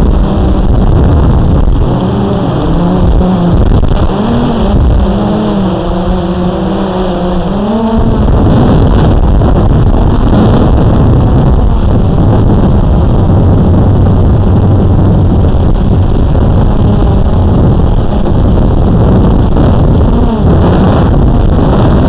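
A quadcopter drone's rotors buzz and whine overhead, shifting in pitch as it manoeuvres.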